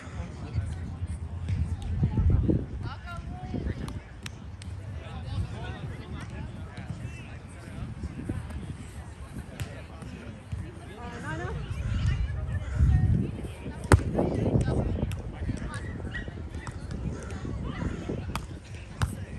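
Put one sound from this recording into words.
Young adults talk and call out nearby.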